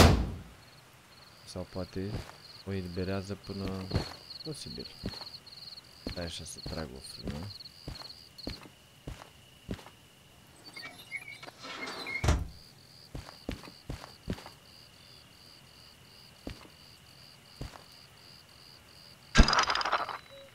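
Footsteps crunch on gravel and metal.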